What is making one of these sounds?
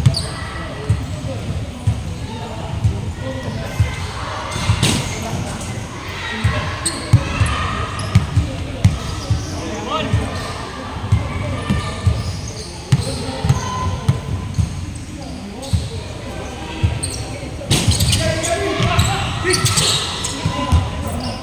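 Young men shout and call out loudly in an echoing hall.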